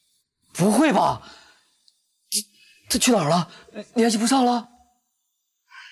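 A young man speaks nearby in a questioning tone.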